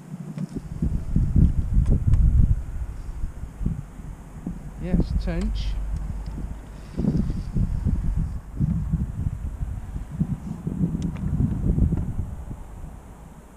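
Wind gusts and rumbles outdoors.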